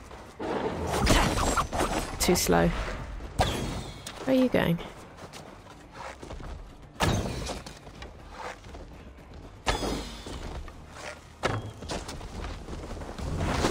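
Blades clash and strike in quick blows.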